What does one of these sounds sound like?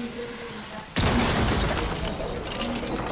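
A loud blast booms, with debris clattering.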